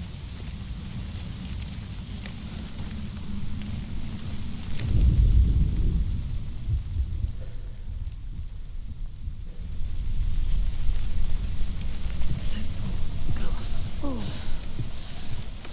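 Footsteps tread on rocky ground.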